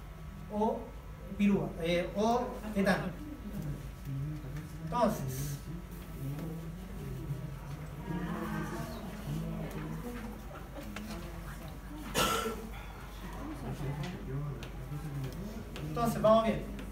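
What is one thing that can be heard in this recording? A young man speaks calmly to a room.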